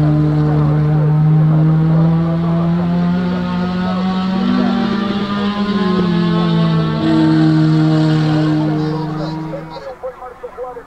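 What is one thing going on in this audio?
Racing saloon cars roar past at full throttle.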